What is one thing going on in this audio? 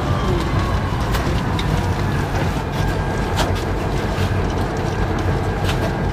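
A train engine rumbles steadily as the train moves along.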